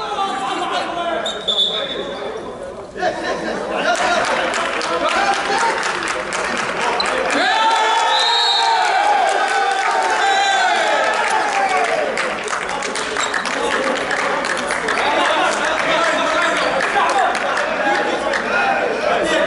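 Volleyballs thump and slap as players hit them.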